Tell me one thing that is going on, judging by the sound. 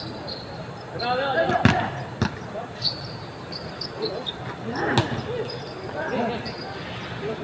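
Men shout and call out to each other during play.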